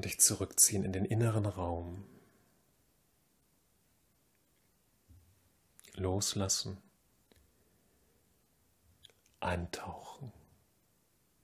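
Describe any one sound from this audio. A man speaks calmly and softly close by, in short phrases with pauses.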